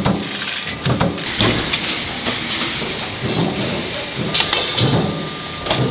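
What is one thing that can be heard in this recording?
A power press thuds as it punches steel strip.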